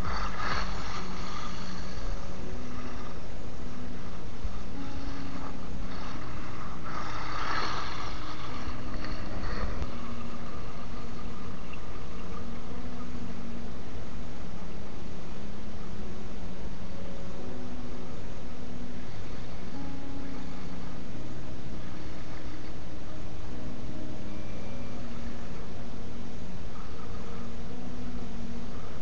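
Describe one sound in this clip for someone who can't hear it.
A small electric motor whines as a toy car drives over rough ground.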